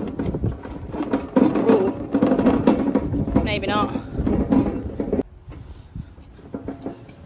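Plastic wheels rumble over gravel.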